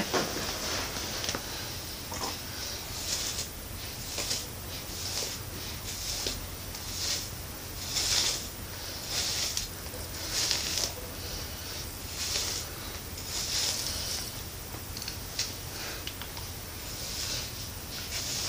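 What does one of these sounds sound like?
Hair rustles and swishes as it is brushed, over and over.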